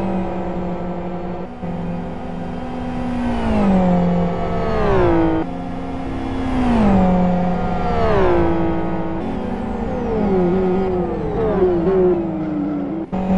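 Racing car engines roar past one after another, their pitch dropping as each goes by.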